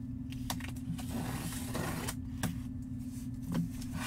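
A knife blade scrapes and slices through tape on a cardboard box.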